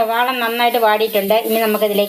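A wooden spatula scrapes and stirs food in a pan.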